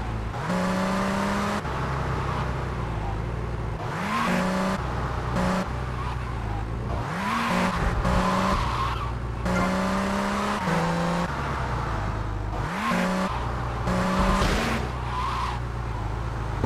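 A car engine revs hard and shifts gears repeatedly.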